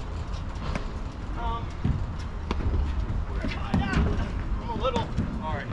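Paddles pop against a ball in a steady back-and-forth rally.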